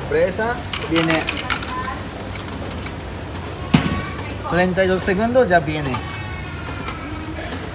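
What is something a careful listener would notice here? A vending machine hums steadily.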